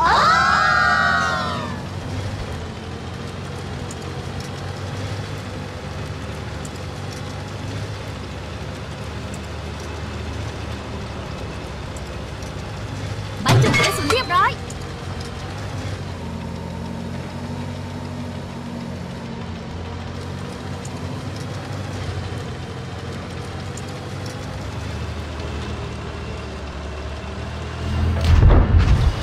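A tank engine rumbles steadily as tracks grind along.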